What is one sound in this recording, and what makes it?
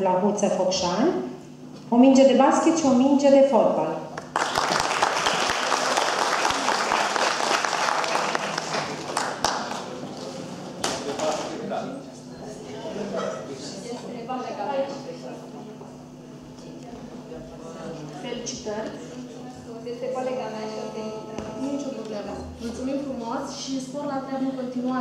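A woman speaks with animation into a microphone over loudspeakers in a large echoing hall.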